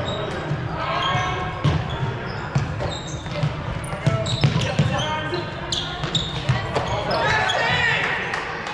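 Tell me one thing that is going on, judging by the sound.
Several young people shout and call out to one another in a large echoing hall.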